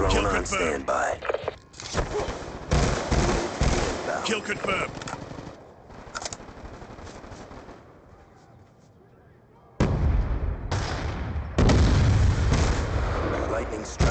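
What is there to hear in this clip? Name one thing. A rifle fires in short bursts, with loud sharp cracks.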